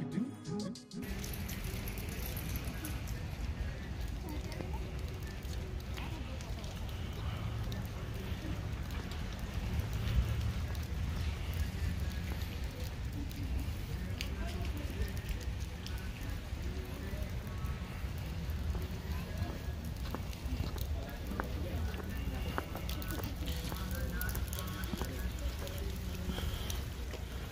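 Light rain falls steadily outdoors.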